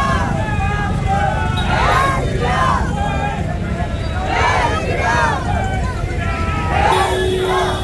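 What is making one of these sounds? A crowd of men shouts and chants loudly nearby.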